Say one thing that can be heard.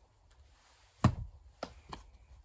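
A hand knocks on a wooden board.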